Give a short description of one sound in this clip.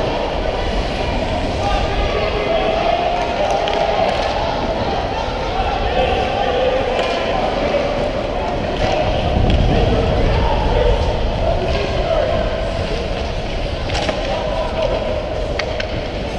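Hockey sticks clack against a puck and the ice in a large echoing rink.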